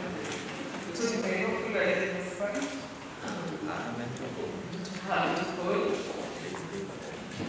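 A young woman speaks softly and slowly into a microphone.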